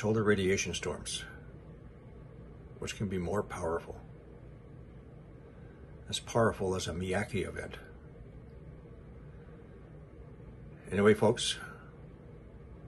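An elderly man speaks calmly and slowly, close to a microphone, with pauses.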